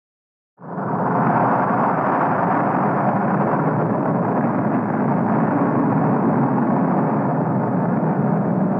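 A huge explosion erupts and roars on steadily, rumbling deep.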